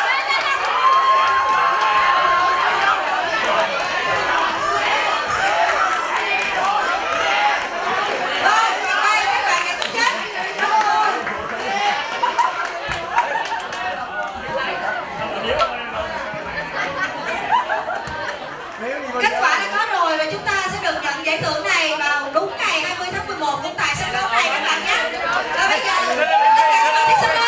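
A crowd of young men and women cheers and laughs excitedly.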